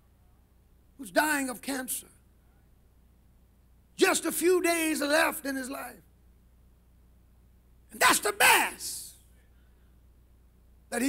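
A man preaches with animation into a microphone, in short bursts with pauses.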